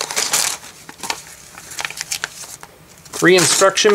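A cardboard box rubs and scrapes as it is handled.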